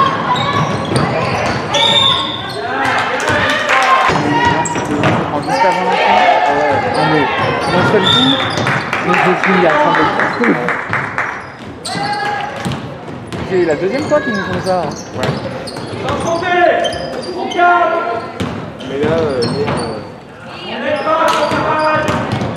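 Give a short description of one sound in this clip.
A basketball bounces on the floor with hollow thuds.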